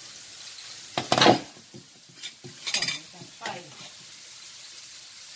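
A ceramic bowl knocks against a pot.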